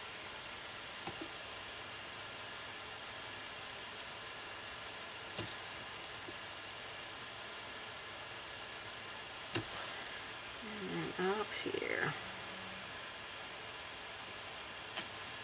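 A paintbrush softly strokes across a painted surface.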